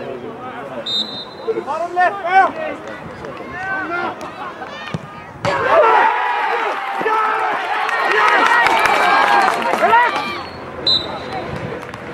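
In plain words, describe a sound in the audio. A referee's whistle blows a short sharp blast.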